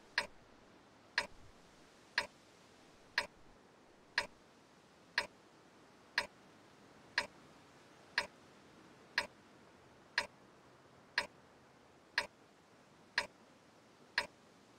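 A countdown timer beeps once every second.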